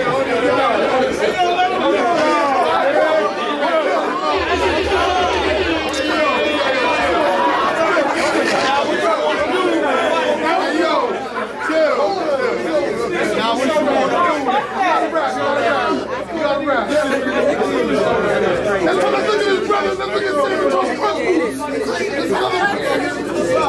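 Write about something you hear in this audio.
A crowd of people talks and cheers in the background.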